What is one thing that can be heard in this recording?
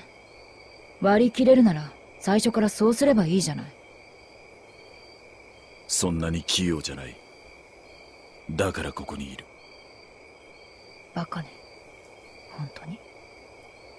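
A young woman speaks in a cool, teasing tone.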